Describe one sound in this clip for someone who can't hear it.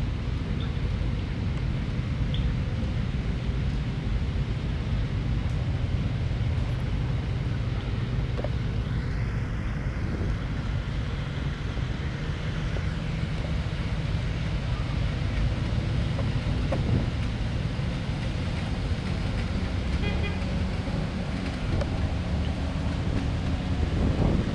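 Old military vehicle engines rumble steadily as they drive slowly across grass.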